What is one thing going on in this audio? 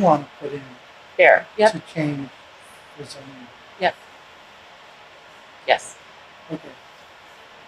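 An older man speaks calmly in short phrases with pauses, heard through a microphone.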